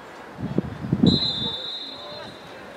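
A referee's whistle blows one short blast.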